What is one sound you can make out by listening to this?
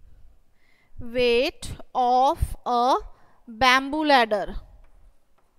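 A woman speaks slowly and clearly, close by.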